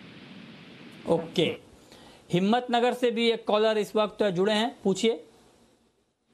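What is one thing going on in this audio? A second man speaks with animation over a microphone.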